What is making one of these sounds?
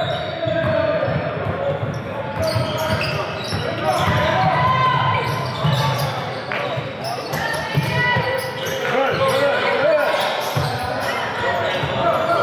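Teenage players call out to each other across an echoing gym.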